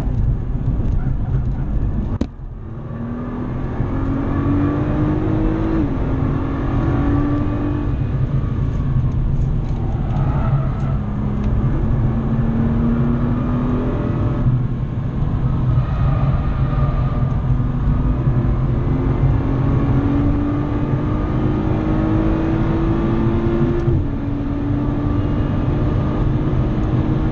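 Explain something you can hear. Tyres rumble on the road surface.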